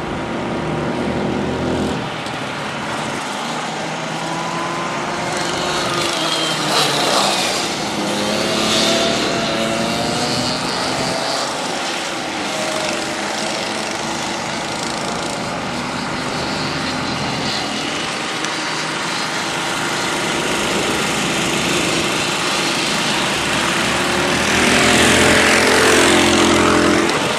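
Kart engines whine and buzz as karts race around a track.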